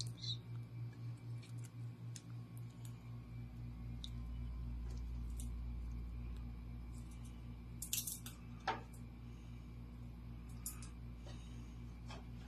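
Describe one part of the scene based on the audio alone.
Fingers peel papery garlic skins with soft rustling.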